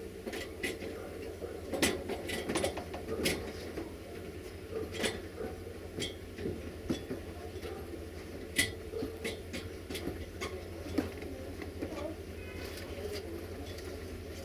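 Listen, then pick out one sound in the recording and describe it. A train rumbles slowly along the track.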